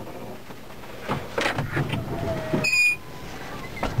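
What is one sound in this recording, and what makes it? A cab door latch clicks open.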